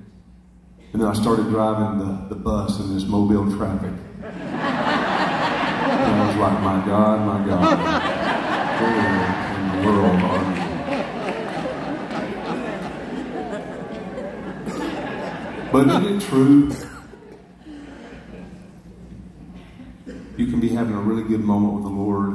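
A middle-aged man speaks with animation through a microphone over loudspeakers in a large echoing hall.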